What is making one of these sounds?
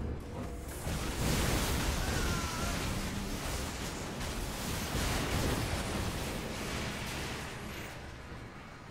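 Explosions boom and roar with a deep rumble.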